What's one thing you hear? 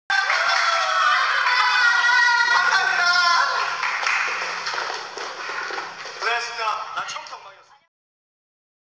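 A young man laughs and shouts with excitement.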